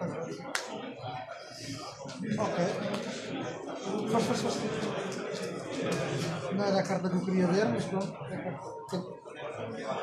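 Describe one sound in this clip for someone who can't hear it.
Playing cards slide and tap softly on a mat.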